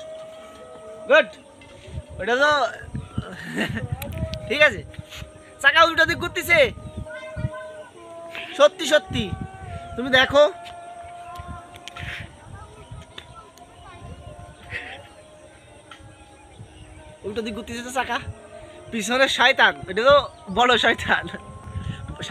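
Young boys shout and call out outdoors.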